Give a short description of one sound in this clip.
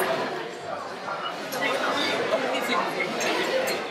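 Liquid pours from a bottle into a glass.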